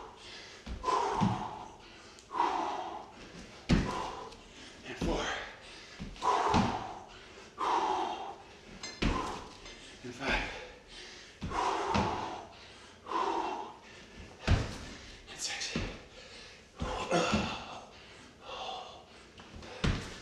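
Feet thud on a wooden floor in a steady rhythm.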